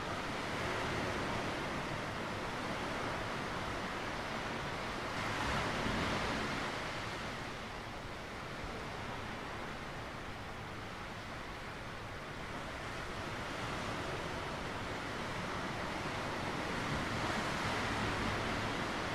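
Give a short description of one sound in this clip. Waves wash softly onto a rocky shore, rising and falling.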